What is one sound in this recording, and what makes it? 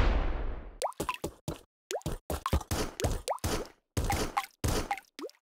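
Short retro game sound effects blip and chirp in rapid bursts.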